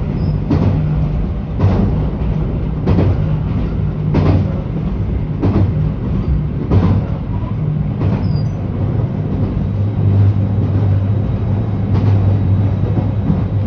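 A train rumbles along with a steady low hum.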